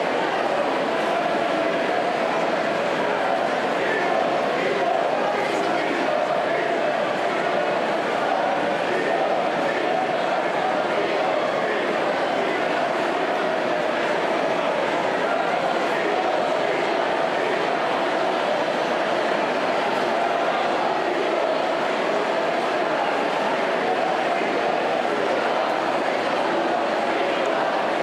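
A large crowd shouts and cheers loudly in an echoing hall.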